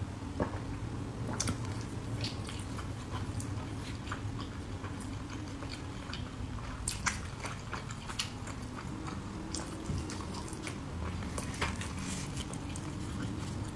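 A young woman chews food noisily close to the microphone.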